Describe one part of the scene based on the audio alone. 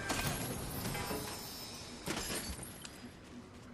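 A treasure chest opens with a sparkling chime.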